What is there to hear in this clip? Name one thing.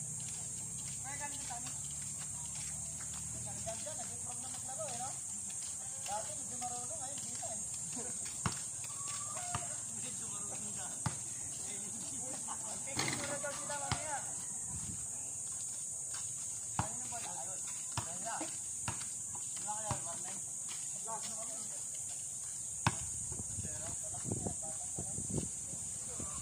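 Children shout and call out to each other outdoors.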